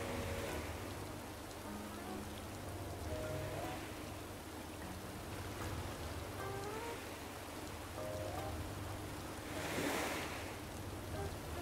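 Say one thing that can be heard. Sea waves wash gently against a shore.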